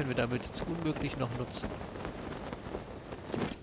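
Wind rushes past during a glide.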